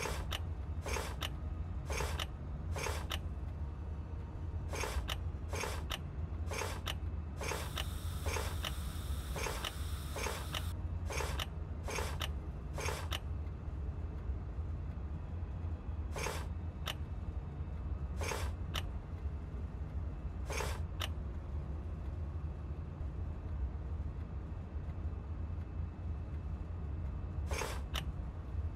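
Game tokens click as they are moved.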